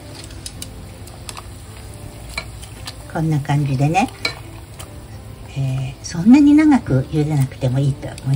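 Chopsticks stir noodles in water.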